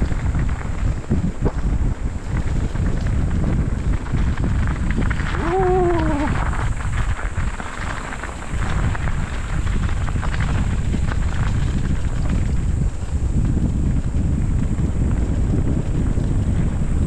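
Wind rumbles past outdoors.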